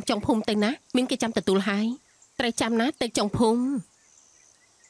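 A woman speaks sternly and quickly up close.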